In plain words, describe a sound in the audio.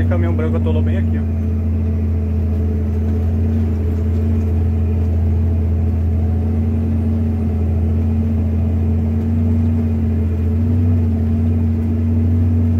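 A vehicle engine drones steadily from inside the cab.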